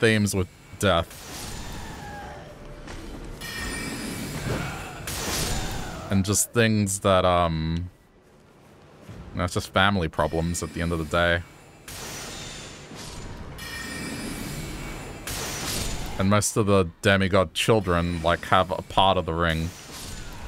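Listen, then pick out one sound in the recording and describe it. Magic spells whoosh and shimmer as they are cast.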